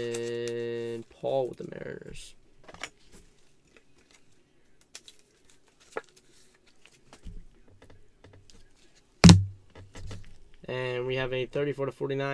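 Cards rustle and tap softly as they are handled.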